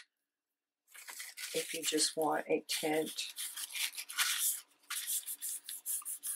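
A hand rubs firmly over paper with a dry, rustling sound.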